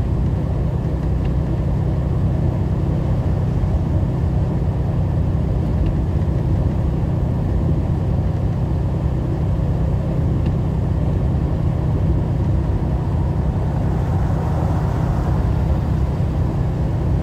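Tyres hum on a wet road.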